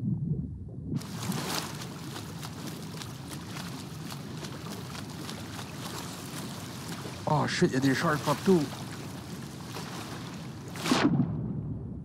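Ocean waves rush and churn loudly.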